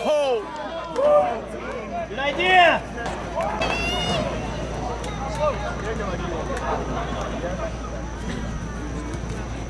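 Young men shout and call out loudly across an open field.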